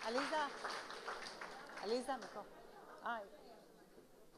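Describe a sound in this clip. A woman speaks into a microphone with animation, heard over loudspeakers in a large room.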